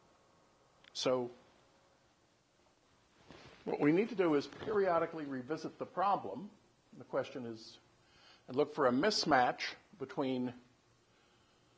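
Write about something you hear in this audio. An elderly man speaks calmly, a little way off.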